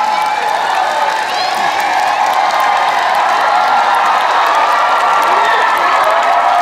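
A large crowd screams and cheers loudly in a big echoing hall.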